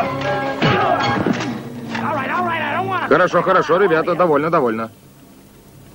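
A man shouts and yells with strain at close range.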